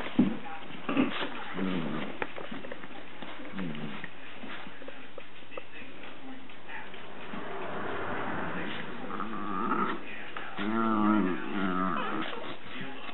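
A large dog growls playfully up close.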